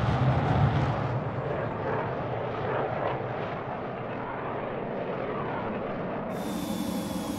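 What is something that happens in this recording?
A jet roars past low overhead and fades.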